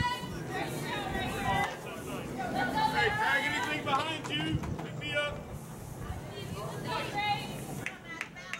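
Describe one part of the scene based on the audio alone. Young players and spectators cheer and shout outdoors.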